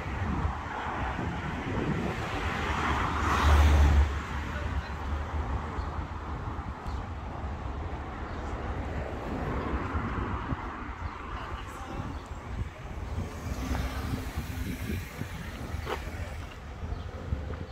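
Cars drive past on a nearby road.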